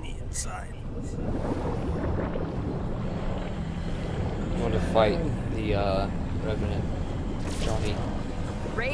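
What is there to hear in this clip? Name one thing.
Thick liquid bubbles and churns loudly.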